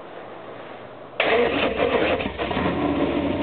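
A car engine cranks and starts with a roar.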